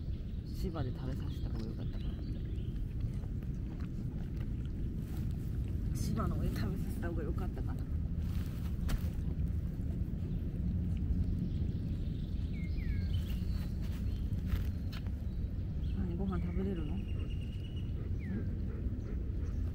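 A dog chews and licks food.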